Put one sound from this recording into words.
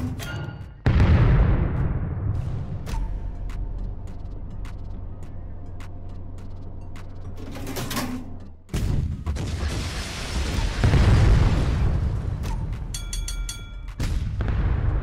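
Heavy naval guns fire with deep, roaring booms.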